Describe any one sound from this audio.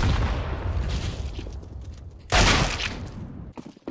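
Rifle shots ring out sharply.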